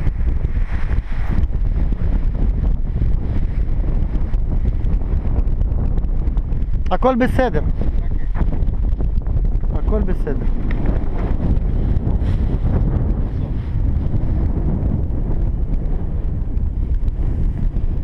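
Wind blusters loudly against the microphone outdoors.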